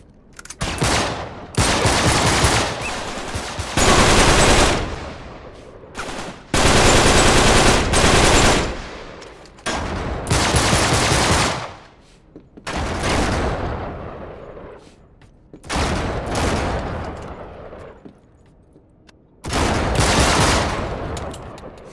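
Gunfire crackles in loud, rapid bursts with pauses between.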